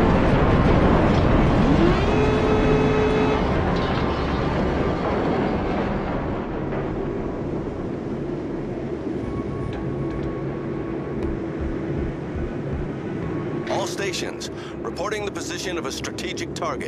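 Water rushes and splashes along a ship's hull.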